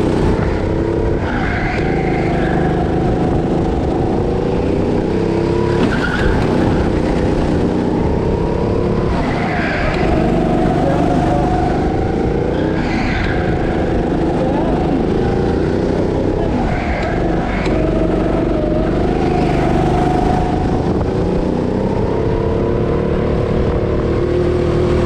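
A go-kart engine revs up and down through corners.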